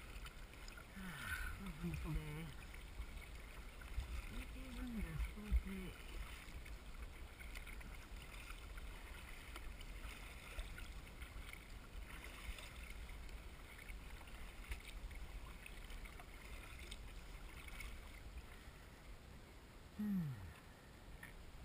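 Wind rumbles across the microphone outdoors on open water.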